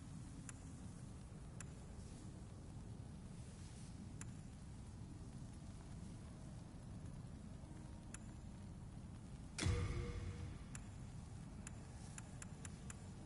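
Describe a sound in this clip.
Short, soft menu clicks tick now and then.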